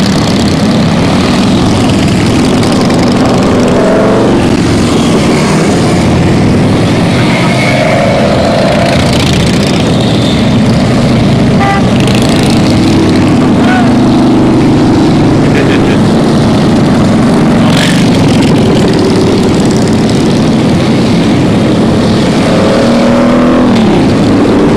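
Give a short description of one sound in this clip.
A long line of motorcycles rumbles past close by, engines roaring loudly.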